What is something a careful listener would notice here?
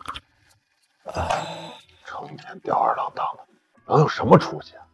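A middle-aged man speaks scornfully.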